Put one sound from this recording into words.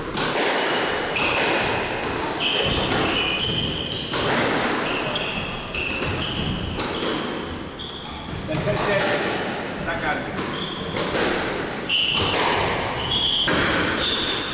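Sneakers squeak sharply on the wooden court floor.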